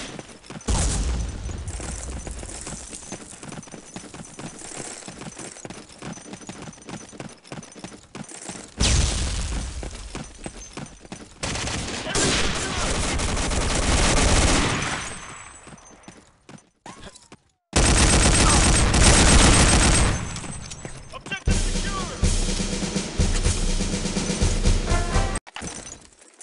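Automatic guns fire in loud, rapid bursts.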